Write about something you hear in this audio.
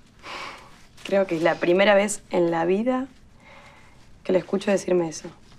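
A young woman speaks softly and happily nearby.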